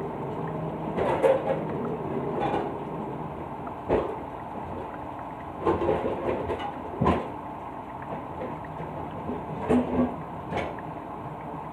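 Objects knock and clatter as someone rummages close by.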